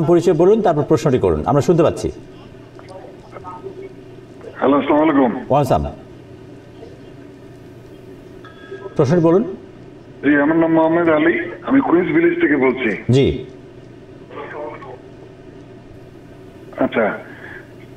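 A man speaks calmly and clearly into a microphone, in bursts with pauses.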